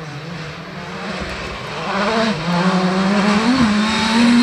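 Gravel crunches and sprays under the car's tyres.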